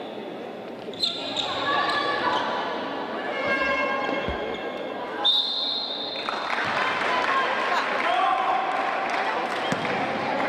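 Sneakers squeak on a hard indoor court.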